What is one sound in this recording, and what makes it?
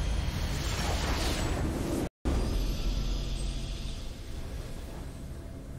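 A triumphant game fanfare sounds.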